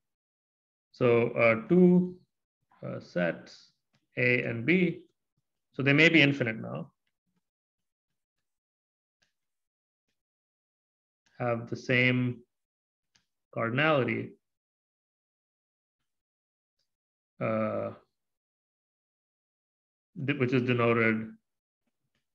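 A man speaks calmly and slowly into a microphone, pausing between phrases.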